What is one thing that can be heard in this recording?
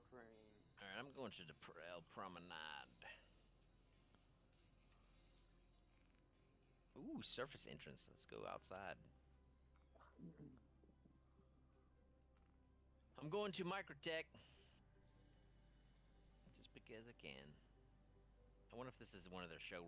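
A man talks casually into a close microphone, in bursts.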